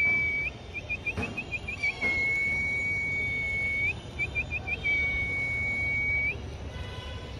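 Birds call with high, drawn-out whistles and short chirps.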